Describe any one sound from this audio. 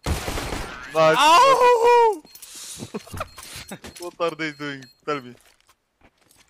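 A young man talks excitedly close to a microphone.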